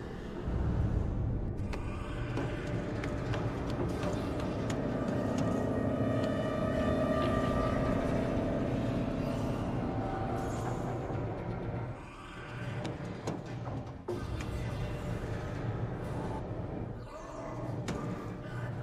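Hands and feet thump softly while crawling through a metal duct.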